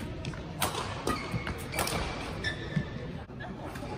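Sneakers squeak on a hard floor.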